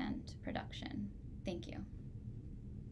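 A woman speaks calmly over an online call, in short phrases.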